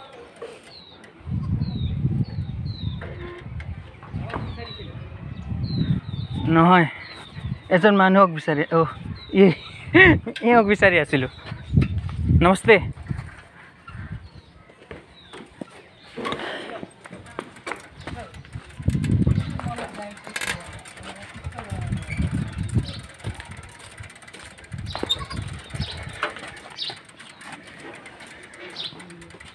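A pushed bicycle rattles and ticks as it rolls.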